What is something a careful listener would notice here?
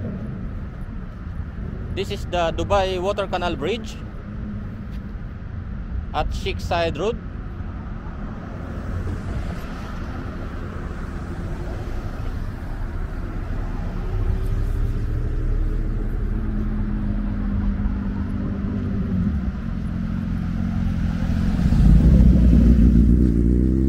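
Traffic rumbles steadily along a road outdoors.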